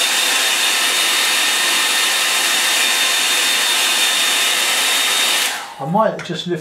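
A hair dryer blows with a loud, steady whoosh.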